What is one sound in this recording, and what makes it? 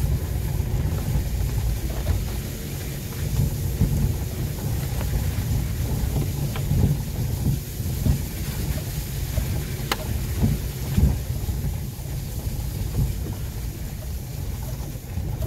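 Raindrops tap on a car windscreen.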